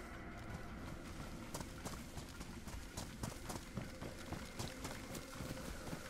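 Footsteps fall softly on grass and gravel.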